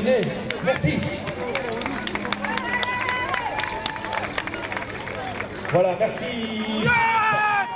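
A crowd of spectators claps.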